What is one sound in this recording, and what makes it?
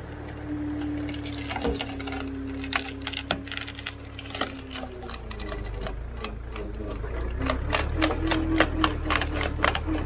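Dry cane leaves crackle and snap as a machine shreds them.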